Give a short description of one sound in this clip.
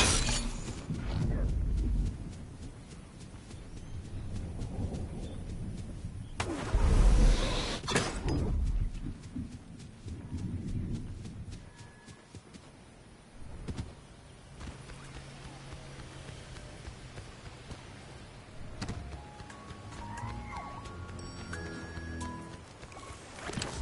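Quick footsteps patter over grass and stone.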